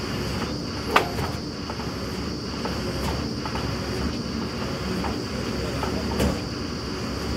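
Metal clanks sharply now and then on the rig.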